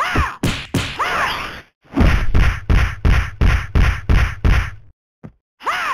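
Rapid punches and kicks land with heavy thuds in quick succession.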